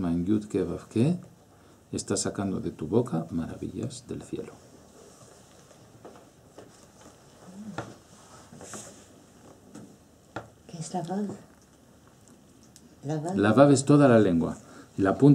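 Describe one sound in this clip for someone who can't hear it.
A middle-aged man speaks calmly and close to a microphone, with pauses.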